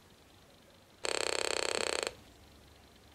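A small loudspeaker gives off a steady, buzzing electronic tone.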